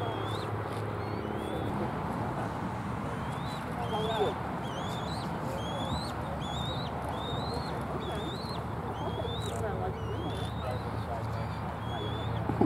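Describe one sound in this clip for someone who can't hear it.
A young bald eagle calls with high, whistled chirps again and again.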